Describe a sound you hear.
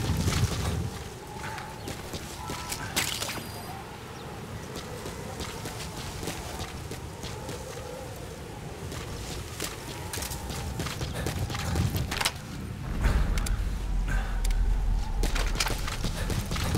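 Boots run over gravel.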